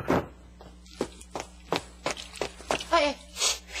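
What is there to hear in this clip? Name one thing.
Footsteps tap sharply on a hard floor.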